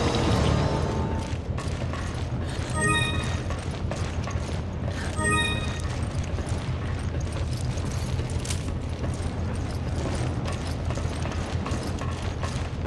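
Footsteps clank on a metal deck.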